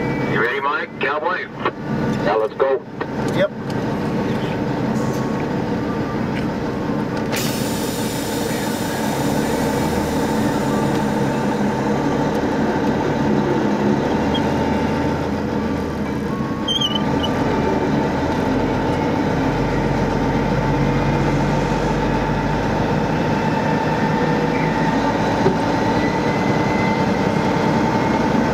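A vehicle engine drones steadily at highway speed.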